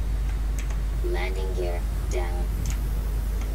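A man speaks briefly and calmly, close to a microphone.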